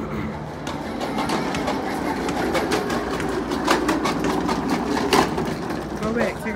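Small plastic wheels roll and rattle on concrete.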